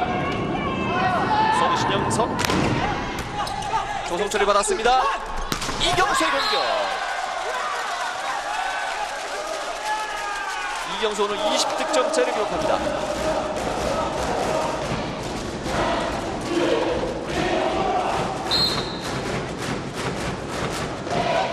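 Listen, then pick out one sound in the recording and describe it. A large crowd cheers loudly in an echoing hall.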